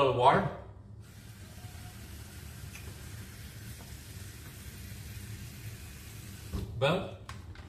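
Water runs from a tap into a bowl.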